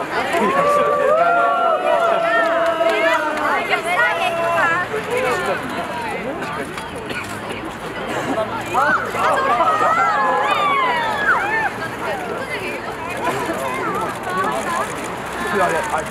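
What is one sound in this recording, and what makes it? Young women cheer and chant excitedly outdoors.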